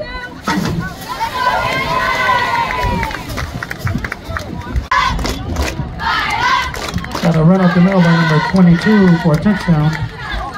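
Young girls chant a cheer together in loud unison outdoors.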